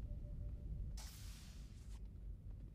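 A sliding door opens with a short hiss.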